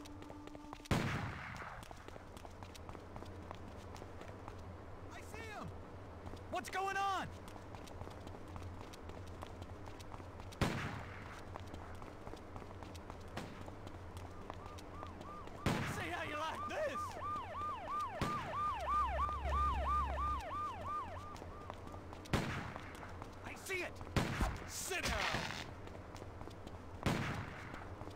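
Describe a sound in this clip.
Footsteps echo on a hard floor in a large empty space.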